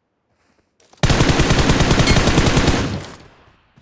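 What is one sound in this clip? A rifle fires a rapid, loud burst.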